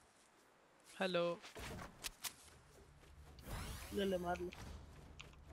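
Wooden walls and a roof snap into place with loud thumps.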